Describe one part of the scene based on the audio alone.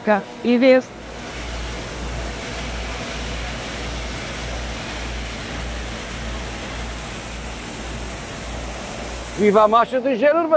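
A street sweeper's brush whirs and scrapes on the road with a low engine hum.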